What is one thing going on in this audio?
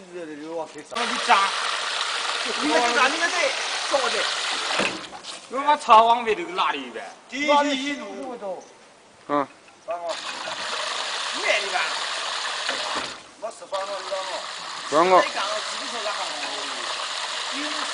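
Water gushes from a pipe and splashes onto the ground.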